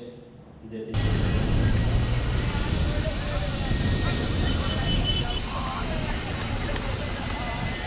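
A crowd of young people chatters outdoors.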